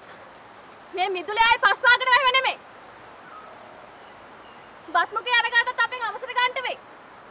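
A woman speaks loudly and angrily, close by.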